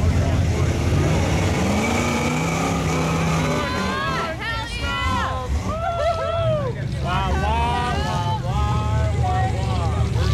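A truck engine revs hard and labours.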